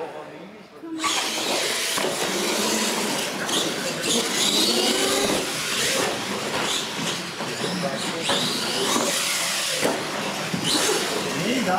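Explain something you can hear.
A small electric motor whines as a model truck speeds across the floor.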